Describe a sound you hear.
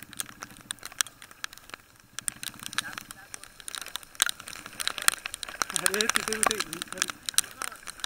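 Raindrops patter and tap close by.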